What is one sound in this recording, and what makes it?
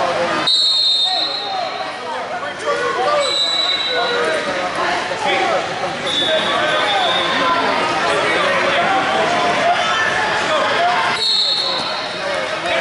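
A referee blows short sharp whistle blasts.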